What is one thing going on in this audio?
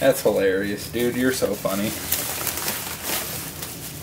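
Plastic packaging crinkles and rustles.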